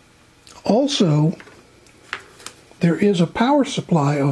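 A small plastic power adapter is picked up with light knocks.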